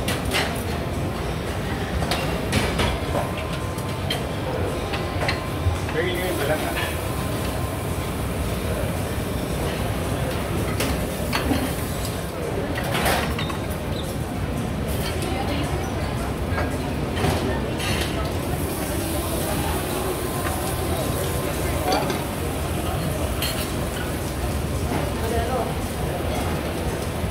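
A steady hum of kitchen extractor fans runs throughout.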